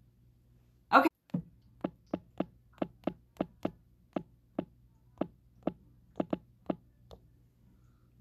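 A makeup brush taps repeatedly on a palette.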